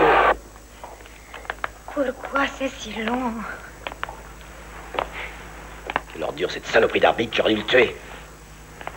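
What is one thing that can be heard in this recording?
A man and a woman talk quietly nearby.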